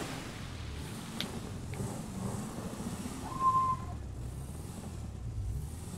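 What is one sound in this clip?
A car engine hums low and steady as the car drives.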